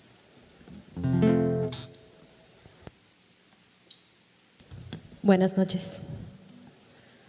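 A young woman speaks briefly into a microphone on stage.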